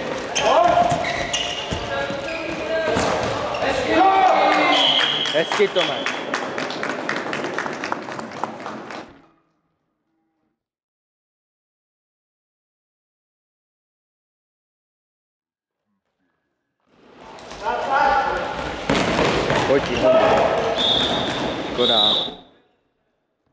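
Young men shout to each other in a large echoing hall.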